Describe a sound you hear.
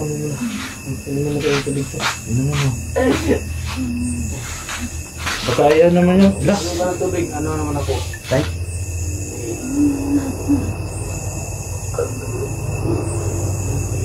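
Young men talk and laugh casually close by.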